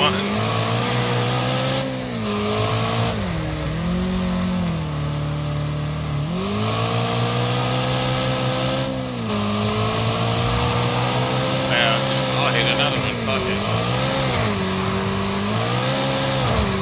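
A car engine revs hard, rising and falling as gears shift.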